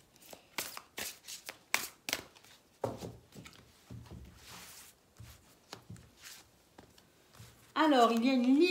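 Cards are shuffled and tapped on a table.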